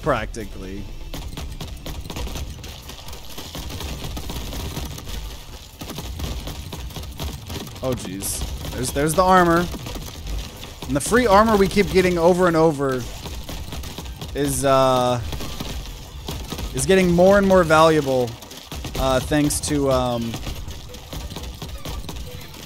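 Game weapons fire in rapid bursts.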